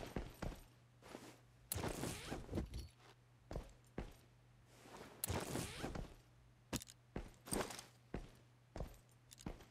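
Short clicks sound as items are picked up and sorted.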